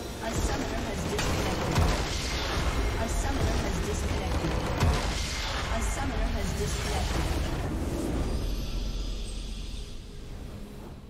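A loud magical blast rumbles and crackles as a structure bursts apart.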